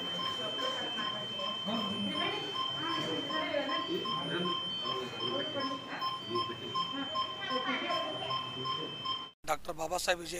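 A medical monitor beeps in a steady rhythm.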